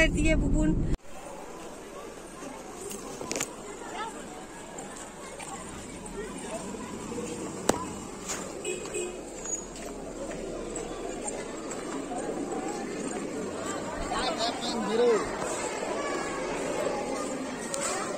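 People chatter faintly outdoors.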